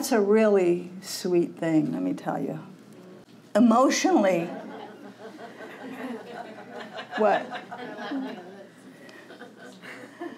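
An older woman speaks with expression into a microphone.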